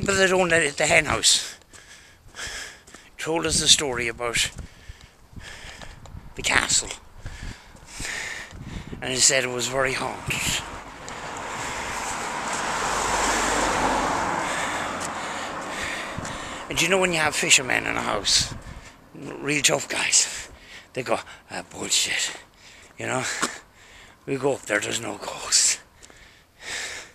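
A man talks close by in bursts, pausing between phrases.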